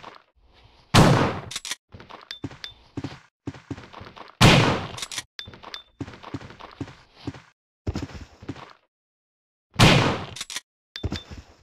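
A handgun fires several loud shots indoors, echoing briefly.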